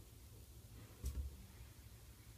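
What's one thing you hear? A screwdriver is set down with a soft knock.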